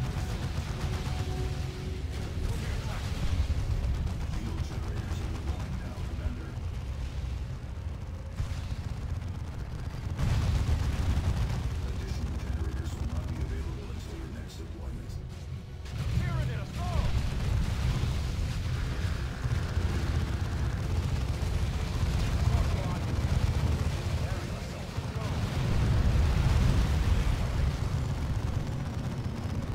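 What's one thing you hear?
Gunfire crackles and rattles in a battle.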